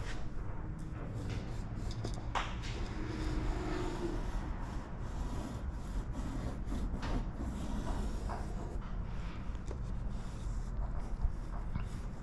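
A pencil scrapes along transfer tape over a car panel.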